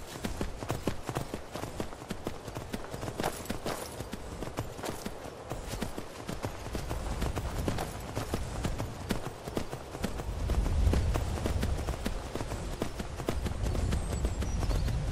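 Horse hooves clop on rocky ground at a steady pace.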